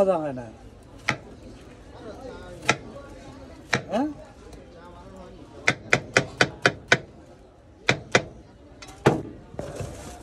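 A knife chops through watermelon onto a cutting board with sharp knocks.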